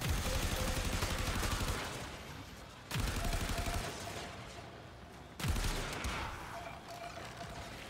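Loud energy blasts boom every few seconds, each one roaring and then fading away.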